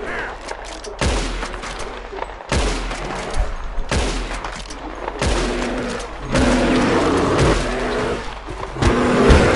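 A rifle fires loud shots, one after another.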